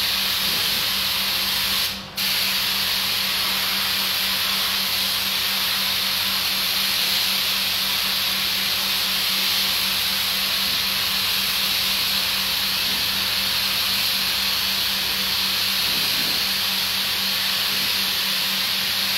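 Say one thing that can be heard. A pressure washer sprays water in a loud, steady hiss.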